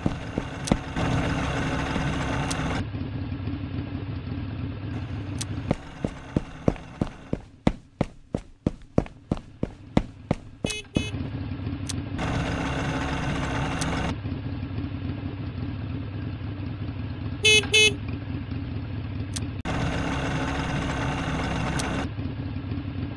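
A motorboat engine hums.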